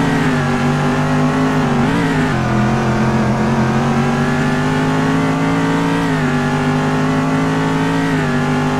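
A racing car engine drones loudly, its pitch shifting with gear changes.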